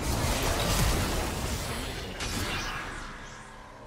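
Game spell effects crackle and clash in a busy fight.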